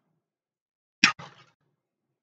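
A loaded barbell drops and clanks against the floor.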